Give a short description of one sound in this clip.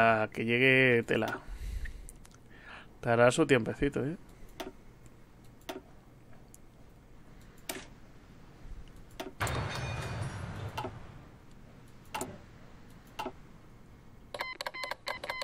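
Short interface clicks sound as menus open and close.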